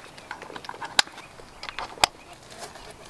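A plastic buckle clicks shut.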